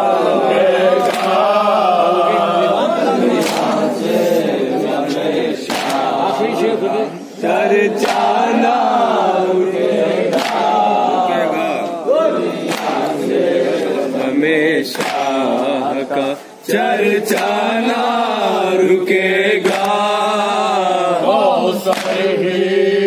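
Several men talk at once, close by, with animation.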